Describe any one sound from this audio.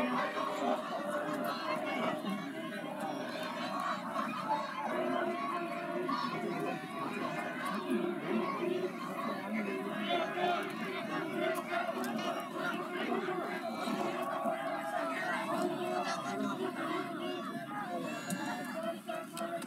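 A crowd of people chatters and cheers outdoors in the distance.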